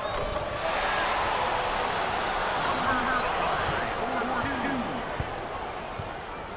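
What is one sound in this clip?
A crowd cheers loudly in a large echoing arena, then quiets down.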